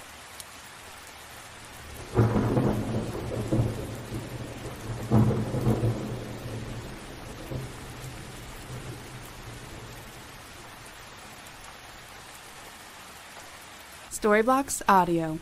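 Rain patters steadily on a window pane.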